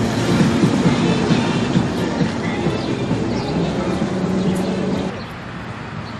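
A car rolls by, its tyres rumbling over cobblestones.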